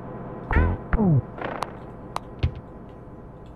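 Video game sound effects boing and chime.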